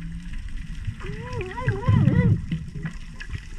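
A humpback whale sings underwater with wavering, moaning calls.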